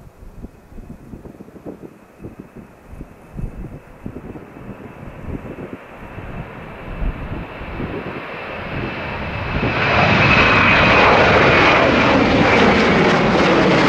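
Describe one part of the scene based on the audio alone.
A jet airliner's engines roar, growing steadily louder as it approaches and passes overhead.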